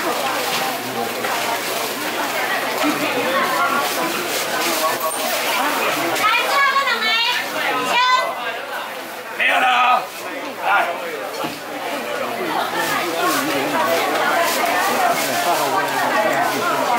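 A crowd of people chatters in a busy, echoing hall.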